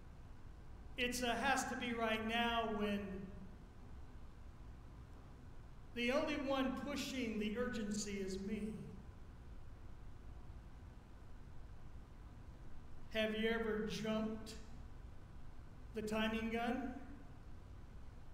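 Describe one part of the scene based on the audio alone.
An older man speaks calmly through a microphone, in short phrases with pauses.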